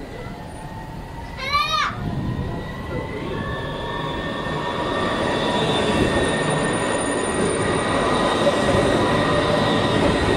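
A tram rolls in along the rails, its rumble and whine growing louder.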